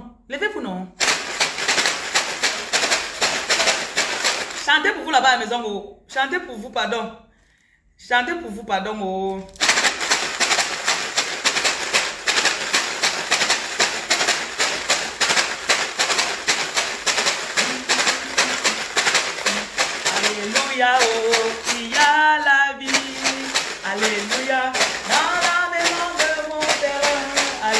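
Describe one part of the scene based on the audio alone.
A plastic water bottle rattles as it is shaken rhythmically.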